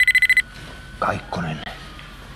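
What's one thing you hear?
A middle-aged man speaks briefly into a phone nearby.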